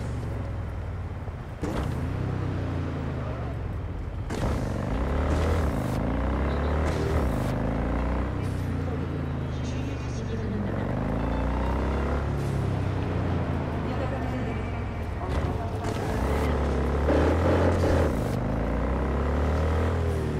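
A motorcycle engine hums and revs up and down.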